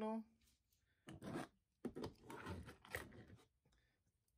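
Plastic toy figures clack and rattle as hands move them on a table.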